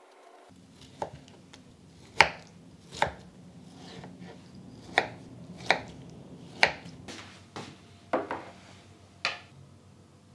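A knife chops through fruit onto a cutting board with sharp knocks.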